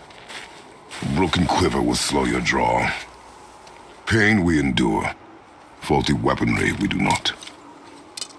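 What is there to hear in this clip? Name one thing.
A man speaks in a deep, low voice, close by.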